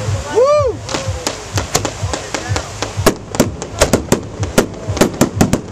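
Firework crackles pop in a quick string.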